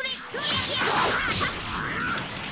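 An energy blast explodes with a crackling burst.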